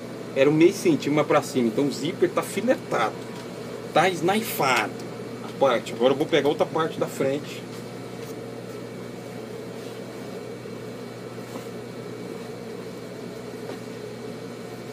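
A sewing machine motor hums steadily.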